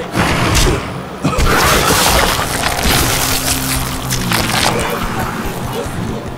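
A monster snarls and growls.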